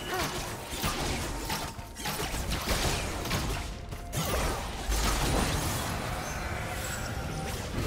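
Video game spell effects whoosh, zap and crackle in quick bursts.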